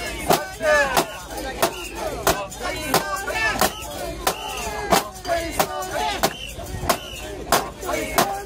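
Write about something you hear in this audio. A large crowd of men chants and shouts loudly outdoors.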